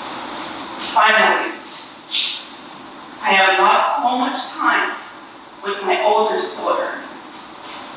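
A woman speaks slowly and haltingly, with pauses between phrases.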